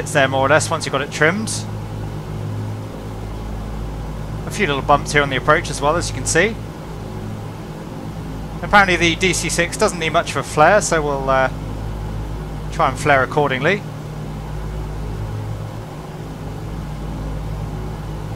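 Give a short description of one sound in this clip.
Aircraft engines drone steadily and low.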